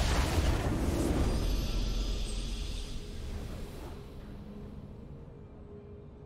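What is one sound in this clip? A triumphant game jingle plays and fades out.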